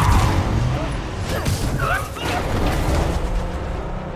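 A car slams down onto the street with a heavy metal crunch.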